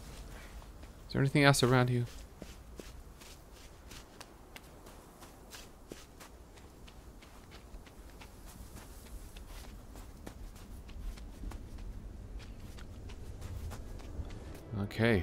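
Light footsteps patter quickly over grass and stone.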